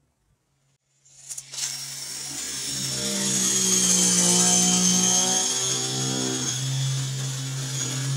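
A power drill whirs loudly, boring into wood with a steady whine.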